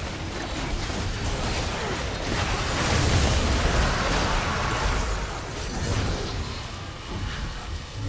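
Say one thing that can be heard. Magic blasts crackle and boom in a video game battle.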